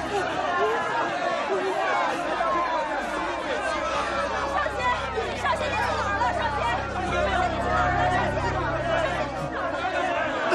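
A crowd of men and women chant and plead loudly together.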